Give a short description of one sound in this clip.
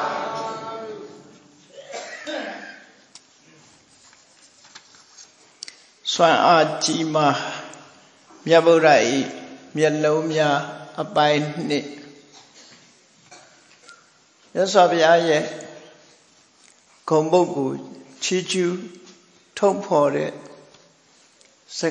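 An elderly man speaks calmly in short phrases, close by.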